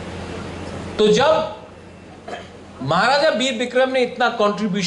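A man speaks into a microphone over loudspeakers.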